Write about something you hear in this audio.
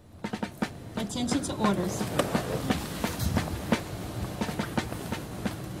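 A woman talks nearby with animation, outdoors.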